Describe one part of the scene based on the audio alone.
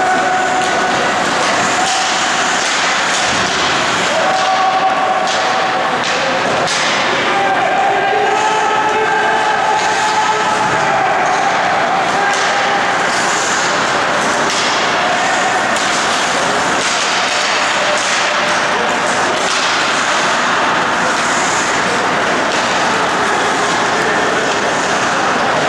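A crowd murmurs and chatters in a large echoing arena.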